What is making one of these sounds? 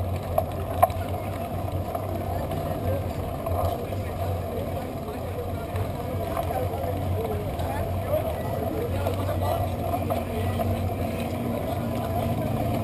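Bicycle wheels hum and rattle on pavement.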